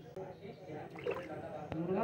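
Water drips and trickles into a bucket.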